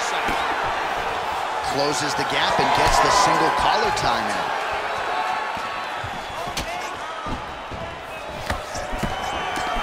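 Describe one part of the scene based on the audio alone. Punches smack sharply.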